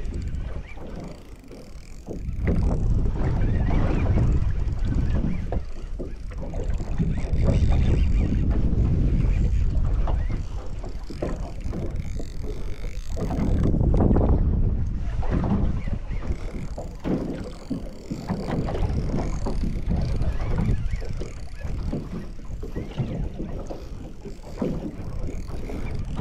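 Wind buffets loudly across open water.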